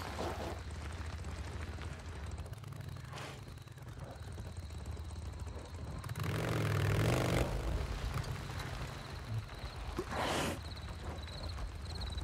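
A motorcycle engine rumbles as the bike rides.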